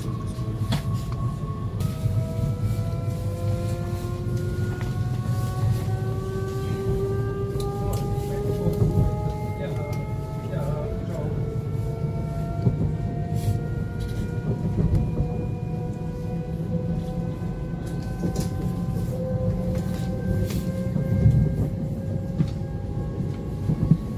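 An electric train motor whines, rising slowly in pitch as the train speeds up.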